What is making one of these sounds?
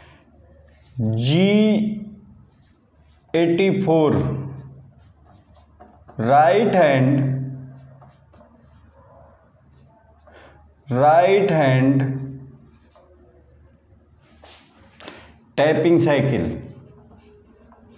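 A man speaks slowly and clearly in short phrases, close by.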